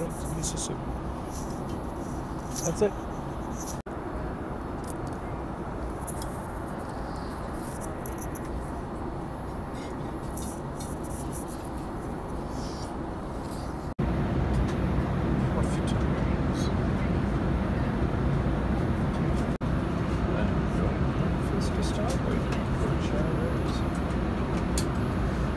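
An aircraft cabin drones steadily with a low rumble.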